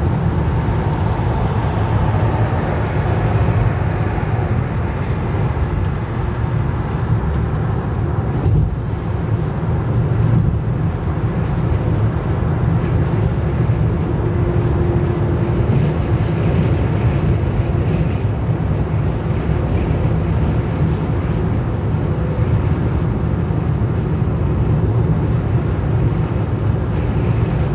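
A car's engine and tyres rumble steadily on a motorway, heard from inside.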